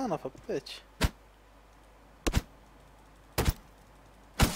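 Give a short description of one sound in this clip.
An axe chops into a tree trunk with sharp thuds.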